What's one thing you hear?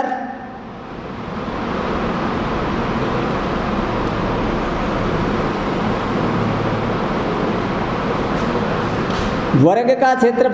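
A marker scratches on a whiteboard.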